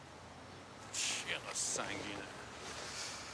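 A man speaks with annoyance, close by.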